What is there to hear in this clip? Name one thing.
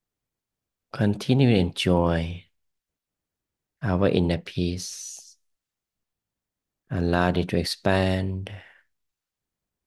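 A man talks calmly into a close microphone, in short phrases with pauses.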